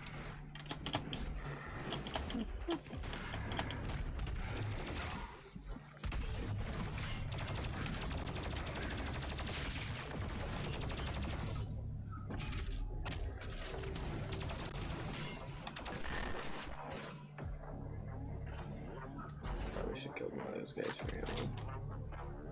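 Gunfire and explosions from a video game boom loudly.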